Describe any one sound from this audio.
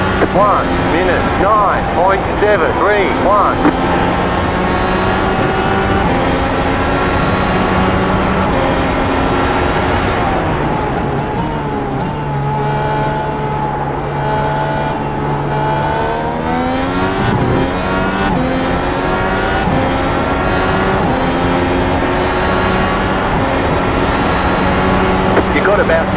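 A racing car engine roars at high revs, climbing and dropping in pitch with each gear change.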